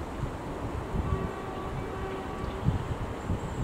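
A train sounds a short horn.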